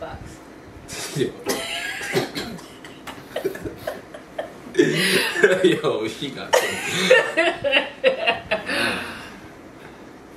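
A young man talks and laughs close to a microphone.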